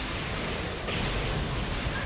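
A heavy gun fires rapid blasts.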